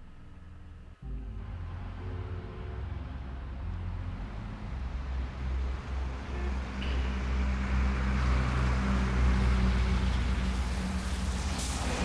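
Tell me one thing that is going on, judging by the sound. City traffic rumbles steadily.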